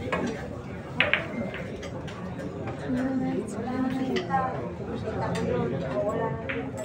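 Pool balls clack against each other and roll on the table.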